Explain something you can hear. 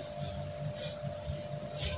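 Scissors snip through cloth.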